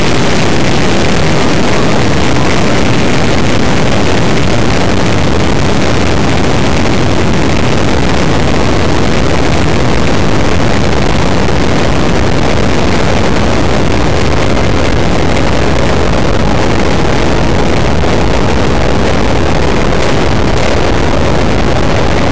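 A car's engine drones steadily.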